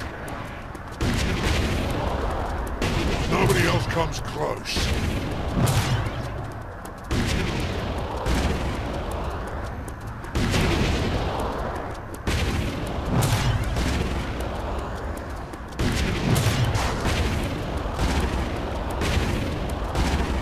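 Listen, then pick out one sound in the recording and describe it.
A loud rushing whoosh swells again and again as a runner speeds along at great pace.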